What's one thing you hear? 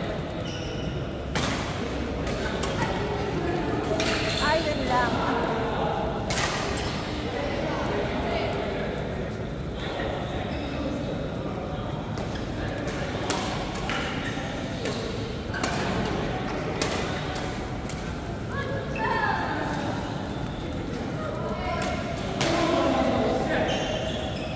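Shoes squeak on the court floor.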